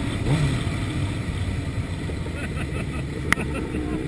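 Another motorcycle engine idles close by.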